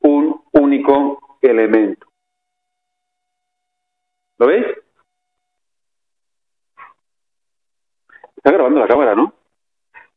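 A man lectures through a microphone, speaking in short phrases with pauses.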